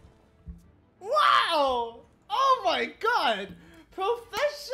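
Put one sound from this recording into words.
A young man shouts excitedly into a microphone.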